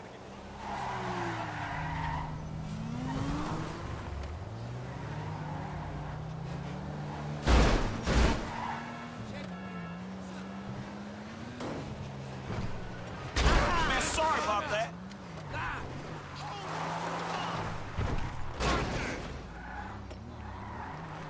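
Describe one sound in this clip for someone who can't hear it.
A car engine hums steadily and revs up and down.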